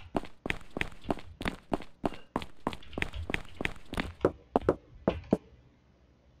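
Rapid gunshots fire in a quick series.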